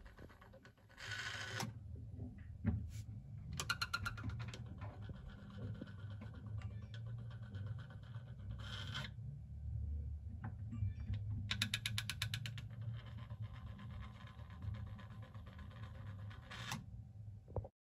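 A small motor hums steadily.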